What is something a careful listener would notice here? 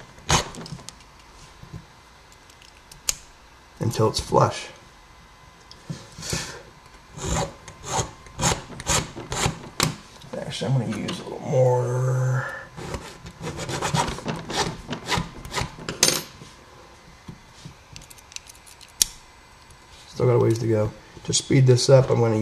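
Small metal picks click and scrape inside a lock.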